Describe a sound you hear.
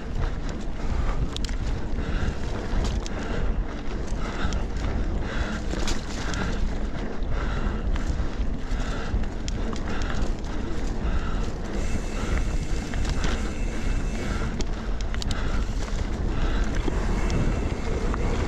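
Bicycle tyres roll and crunch over dry leaves and dirt.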